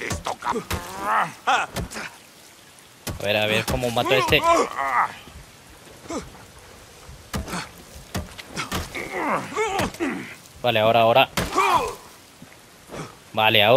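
Heavy blows land with dull thuds in a fight.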